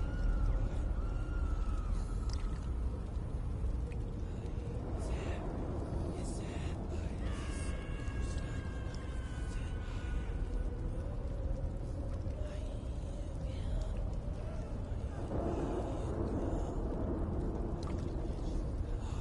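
Water laps and trickles steadily in an echoing cave.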